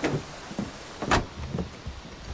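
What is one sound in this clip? A car door slams shut with a heavy thud.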